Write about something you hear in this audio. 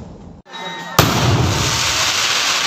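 An aerial firework shell bursts overhead.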